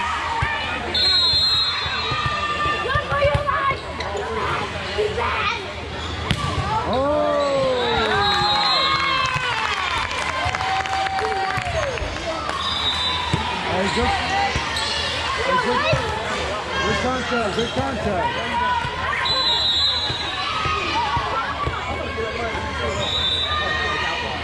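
A referee's whistle blows in short sharp blasts.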